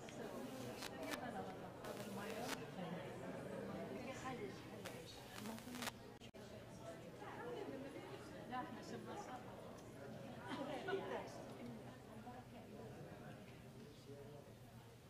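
Men and women chat quietly nearby in a room with some echo.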